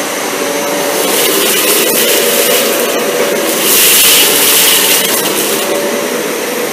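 Debris rattles up into a vacuum cleaner as it sucks up crumbs.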